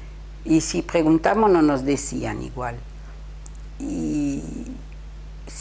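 An elderly woman speaks calmly and close to a microphone.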